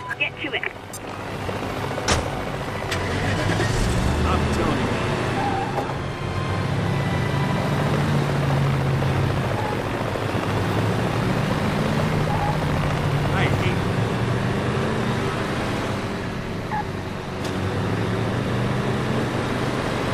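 A truck engine roars steadily as the truck drives along a road.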